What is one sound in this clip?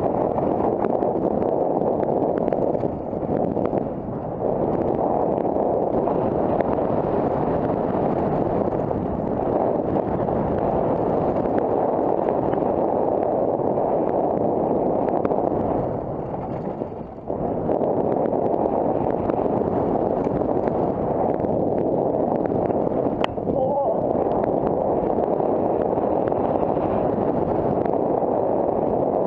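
A mountain bike rattles over a rough dirt trail.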